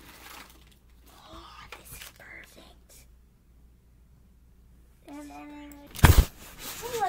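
A boy speaks with animation close by.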